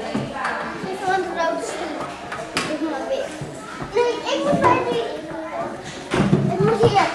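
Young children talk and call out excitedly nearby.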